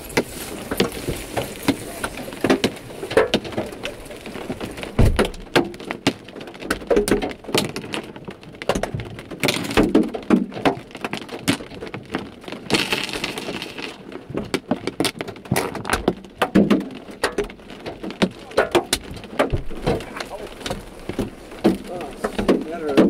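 Hailstones clatter and tick against a window and sill.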